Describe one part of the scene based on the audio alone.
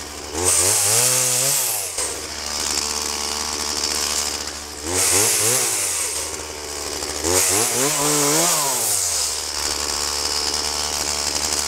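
A chainsaw engine idles and revs up loudly in bursts, outdoors.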